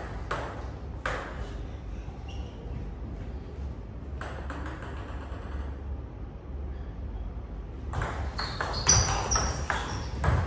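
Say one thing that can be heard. A ping-pong ball clicks back and forth on paddles and a table indoors.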